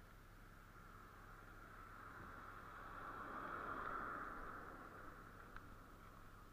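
A car drives past on the road, rising and fading.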